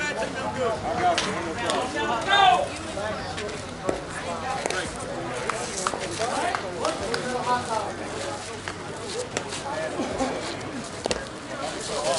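Several men call out and chatter nearby, outdoors.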